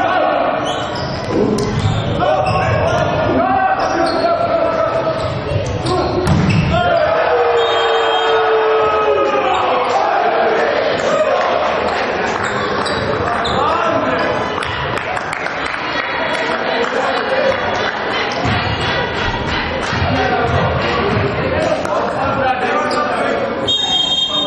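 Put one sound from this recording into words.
Young male players shout to each other on a volleyball court.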